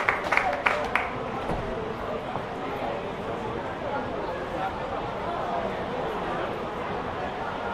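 A crowd of men and women chatters all around.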